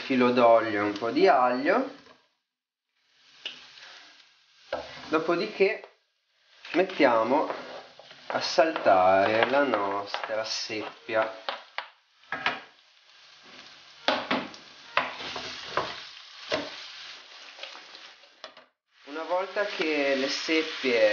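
A wooden spoon scrapes and taps against a frying pan.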